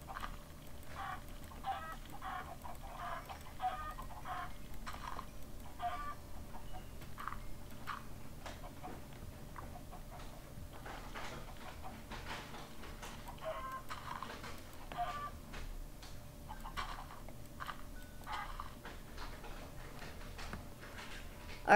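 Chickens cluck in a flock.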